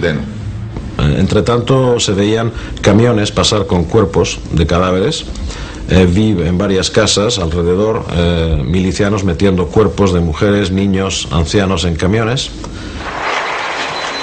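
Another middle-aged man speaks with animation, close to a microphone.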